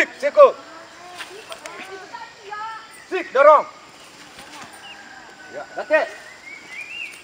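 A man gives sharp shouts.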